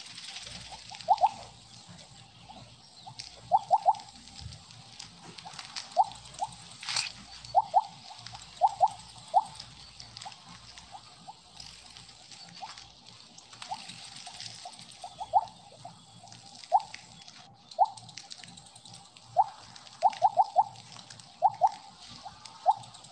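Short bright game blips sound again and again as a snake gobbles glowing pellets.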